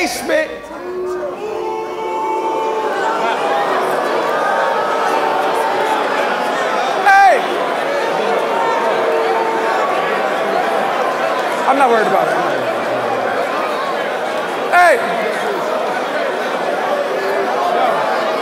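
A large crowd cheers and shouts loudly in a big echoing hall.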